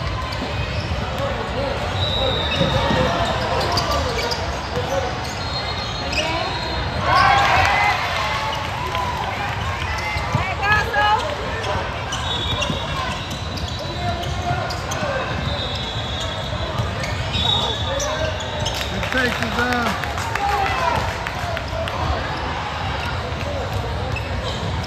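A crowd chatters and cheers throughout a large echoing hall.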